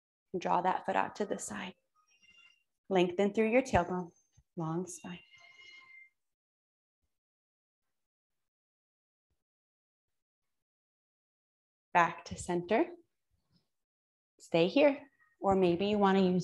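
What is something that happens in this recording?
A woman speaks calmly and clearly into a close microphone, pausing between phrases.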